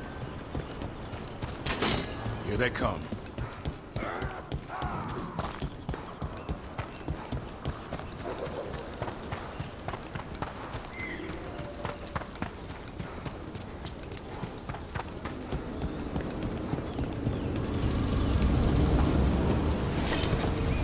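Footsteps thud quickly on stone and earth.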